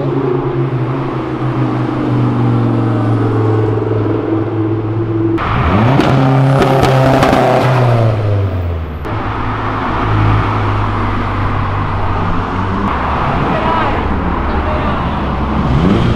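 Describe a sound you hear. A sports car engine rumbles loudly as the car drives slowly past.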